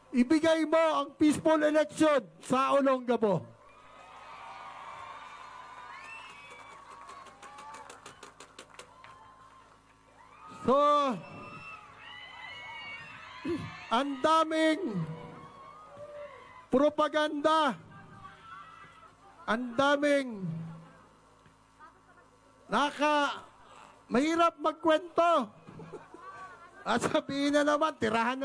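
A man sings loudly into a microphone over loudspeakers, echoing outdoors.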